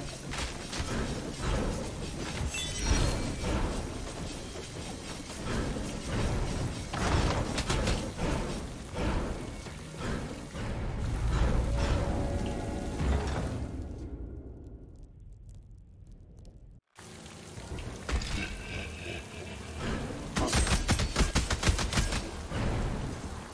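A sword swishes and slashes rapidly.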